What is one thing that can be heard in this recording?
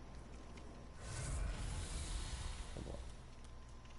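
A burst of flame roars briefly.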